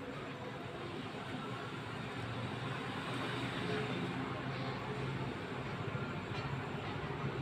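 Pigeons coo low and softly nearby.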